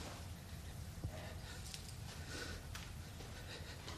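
Footsteps walk slowly across a hard floor indoors.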